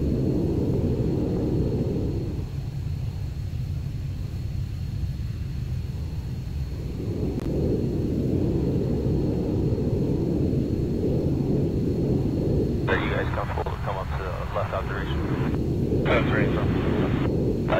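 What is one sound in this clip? A jet engine roars steadily, heard from inside the cockpit.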